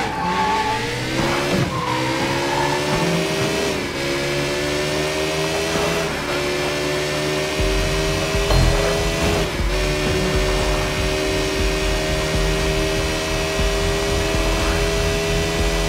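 A motorcycle engine roars and revs up through the gears.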